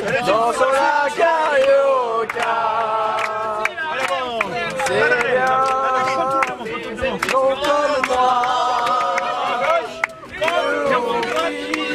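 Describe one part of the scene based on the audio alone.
A group of men and women sing loudly together close by.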